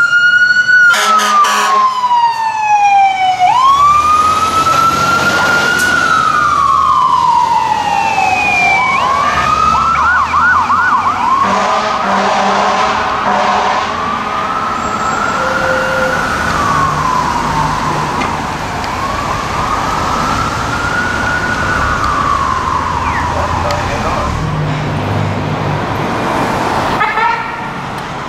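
A fire truck siren wails, rising and falling as it passes and moves away.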